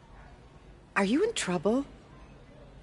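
A middle-aged woman asks questions in a gentle, concerned voice.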